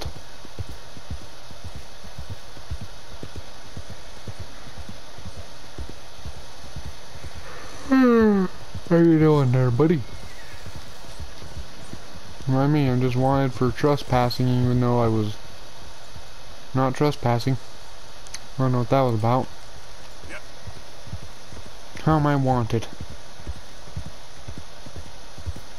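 A horse gallops with rapid hoofbeats on soft ground.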